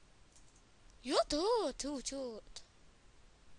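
A short electronic jingle plays as a level is completed.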